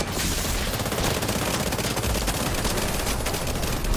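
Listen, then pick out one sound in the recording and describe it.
Gunshots rattle in rapid bursts.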